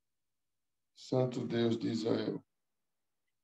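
A man speaks briefly and calmly over an online call.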